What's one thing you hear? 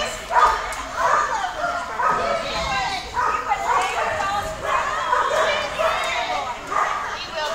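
Dogs bark and yelp repeatedly in a large echoing hall.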